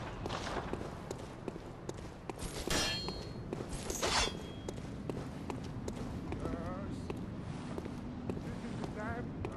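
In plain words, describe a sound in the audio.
Footsteps tap on stone paving at a steady walking pace.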